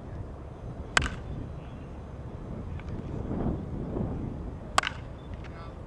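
A baseball smacks into a catcher's mitt with a sharp pop.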